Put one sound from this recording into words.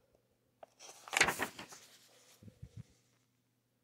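Paper pages rustle as they are turned by hand.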